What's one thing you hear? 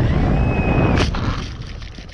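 A plane crashes into grass with a thud.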